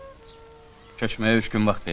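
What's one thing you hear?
A second man answers in a low, firm voice.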